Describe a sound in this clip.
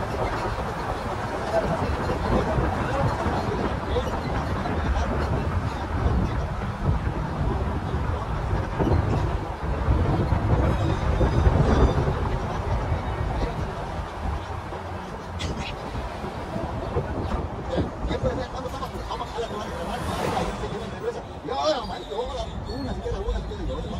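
A car drives steadily along a road, with its engine and tyres rumbling.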